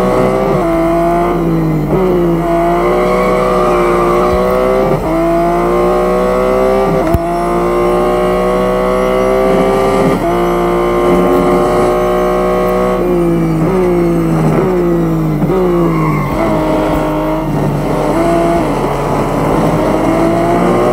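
A racing car engine roars loudly, rising in pitch through each gear and dropping sharply at every gear change.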